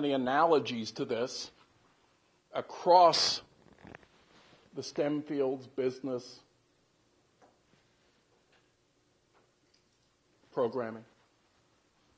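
A man speaks in bursts with long pauses.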